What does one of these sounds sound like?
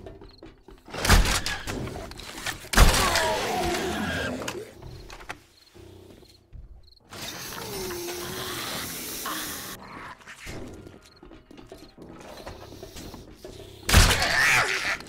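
A crossbow fires with a sharp twang.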